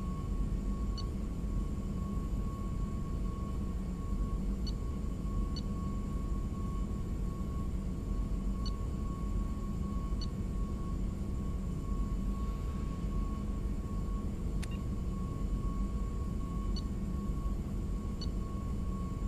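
Short electronic menu blips sound as a selection moves from item to item.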